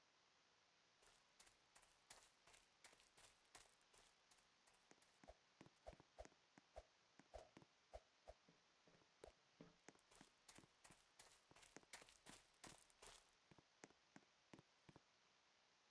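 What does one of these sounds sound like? Quick light footsteps patter on grass.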